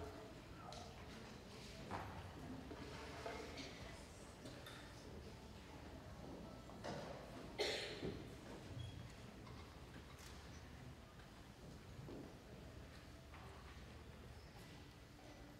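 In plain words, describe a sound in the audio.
Musicians and audience members shift and rustle quietly in a large echoing hall.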